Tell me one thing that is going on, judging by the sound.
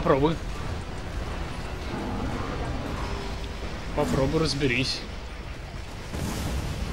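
Explosions rumble low and heavy.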